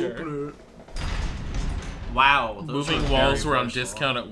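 Heavy iron gates creak and grind open.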